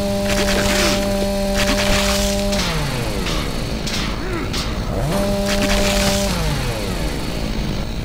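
A chainsaw roars and revs, then winds down.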